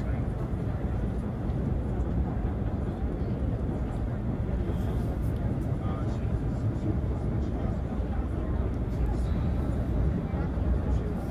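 A car's engine hums and its tyres roll steadily over the road.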